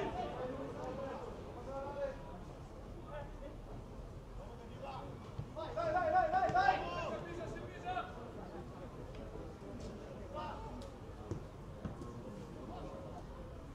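Young men shout to each other across an open outdoor pitch.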